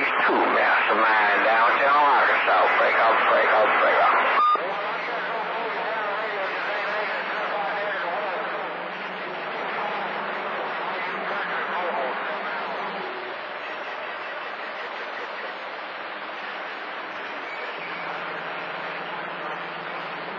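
A radio receiver hisses and crackles with static.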